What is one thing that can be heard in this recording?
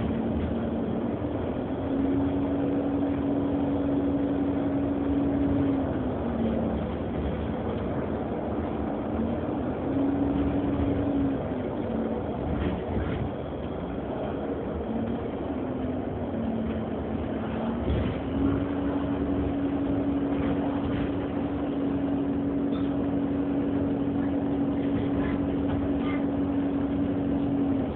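A bus rattles and rumbles over the road.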